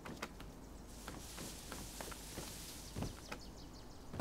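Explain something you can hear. Leaves rustle as someone pushes through a bush.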